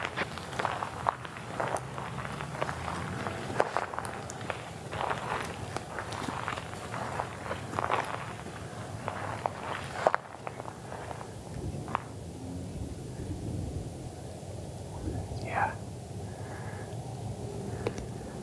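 A metal frame rattles and scrapes as it is dragged through dry grass.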